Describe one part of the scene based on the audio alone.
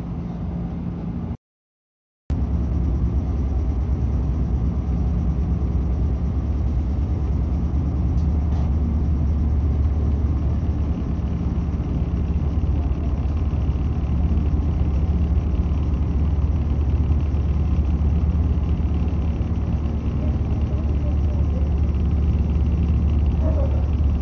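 A train rumbles and hums steadily as it pulls away.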